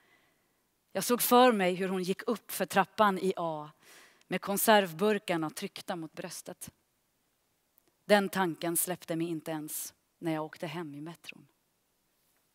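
A young woman reads out calmly through a microphone.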